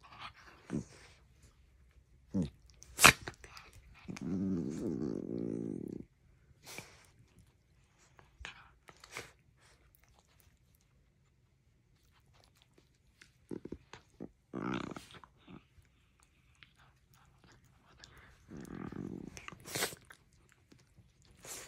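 Two small dogs growl playfully while wrestling.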